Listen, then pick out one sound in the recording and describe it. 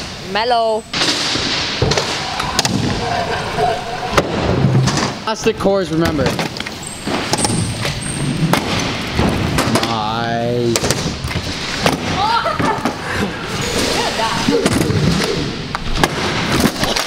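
Scooter wheels roll and rumble over wooden ramps.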